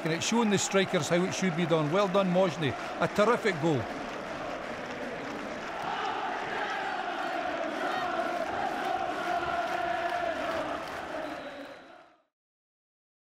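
A large stadium crowd cheers and chants loudly.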